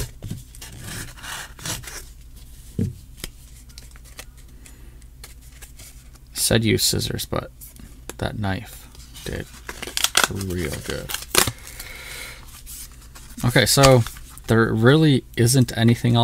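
Stiff paper rustles and crinkles as it is handled and folded.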